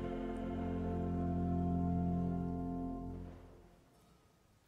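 A choir sings a held chord that fades away in a large echoing hall.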